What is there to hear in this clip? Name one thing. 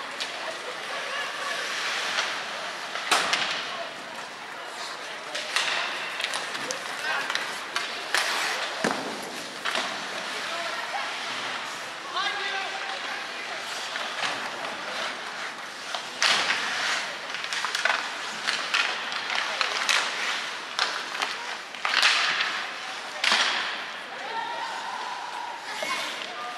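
Young men shout to each other across the ice.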